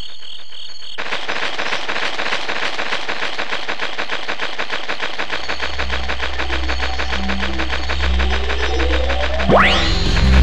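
Rapid footsteps run across grass.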